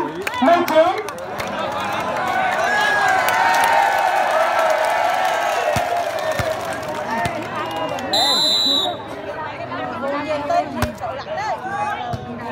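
A large outdoor crowd cheers and chatters loudly.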